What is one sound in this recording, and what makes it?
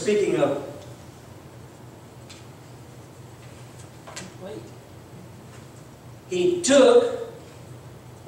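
An elderly man speaks slowly into a microphone, heard through loudspeakers in an echoing hall.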